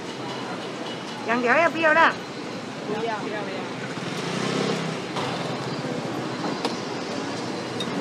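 Metal tongs clack as a vendor handles food.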